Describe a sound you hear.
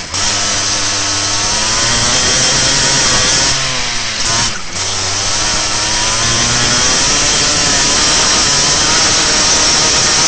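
A kart engine revs loudly and close up, its pitch rising and falling.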